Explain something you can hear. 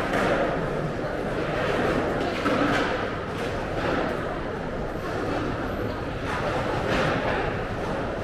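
Footsteps tap steadily on a hard floor close by.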